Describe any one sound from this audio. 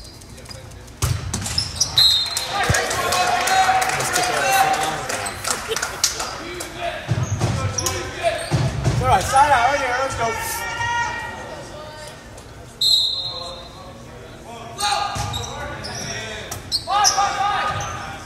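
A volleyball is struck with sharp smacks in an echoing gym.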